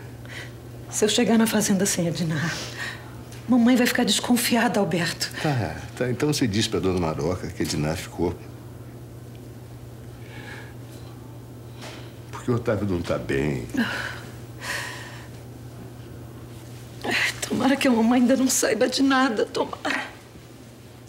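A woman speaks emotionally and tearfully, close by.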